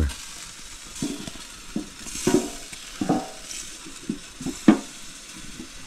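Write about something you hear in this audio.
A metal grill lid clanks as it is closed and latched.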